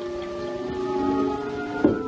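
Liquid is ladled and poured into a cup.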